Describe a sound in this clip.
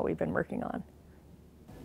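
A young woman speaks calmly into a nearby microphone.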